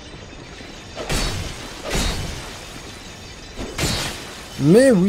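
A sword strikes with sharp metallic hits.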